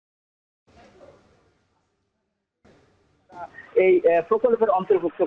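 A man speaks steadily into a microphone, reporting.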